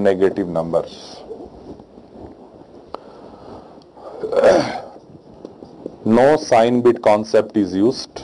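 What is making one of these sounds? A man lectures calmly and clearly into a close microphone.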